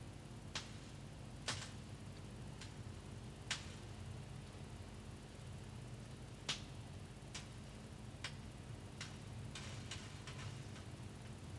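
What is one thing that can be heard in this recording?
A wooden stick taps and clicks against a plastic tray.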